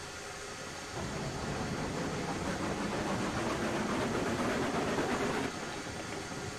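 A small steam locomotive puffs and hisses as it starts moving.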